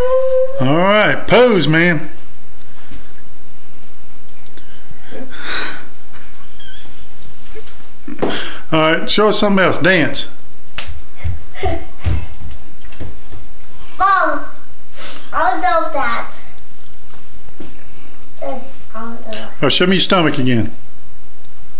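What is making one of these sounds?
A young boy talks and laughs close by.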